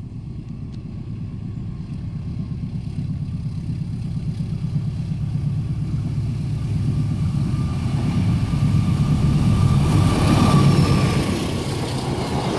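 A diesel locomotive engine rumbles loudly as a train approaches.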